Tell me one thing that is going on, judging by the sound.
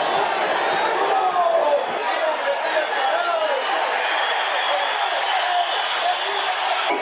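A large stadium crowd cheers and shouts loudly.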